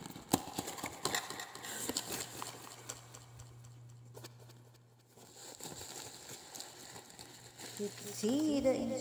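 Plastic wrapping rustles and crinkles as hands dig through it.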